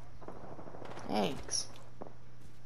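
A game's smoke canister bursts with a short whoosh.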